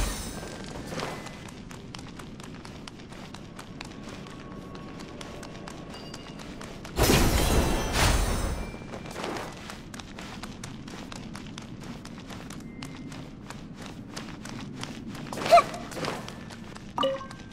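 Quick light footsteps patter on stone.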